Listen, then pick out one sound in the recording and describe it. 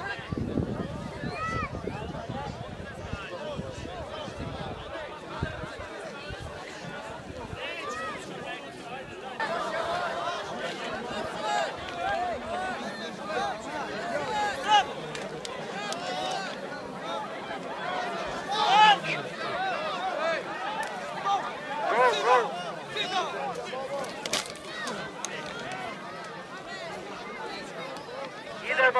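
A large crowd of men and women murmurs and talks all around, close by and outdoors.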